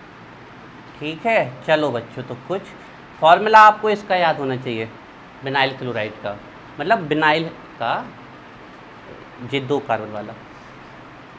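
A man explains calmly, lecturing close by.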